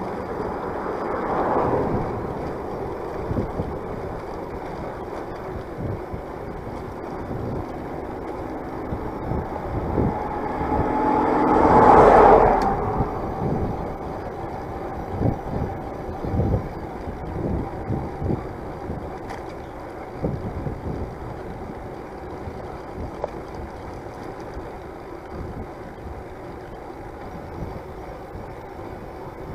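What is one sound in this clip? A small motorbike engine hums steadily as it rides along.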